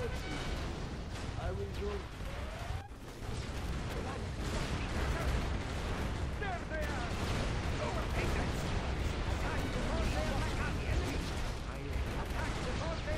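Explosions boom and rumble in quick succession.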